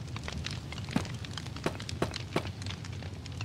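A block knocks into place.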